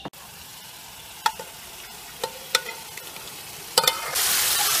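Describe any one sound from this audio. A spoon scrapes and taps against a metal pot.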